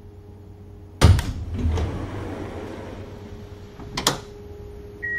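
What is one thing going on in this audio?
Tram doors open with a loud thud and a hiss of air.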